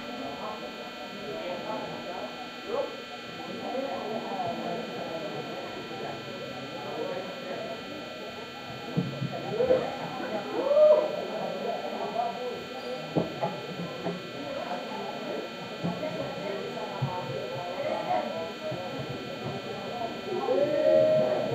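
A group of young women chant together in a large echoing hall.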